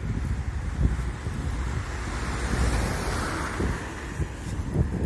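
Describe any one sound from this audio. A car drives past on a wet road.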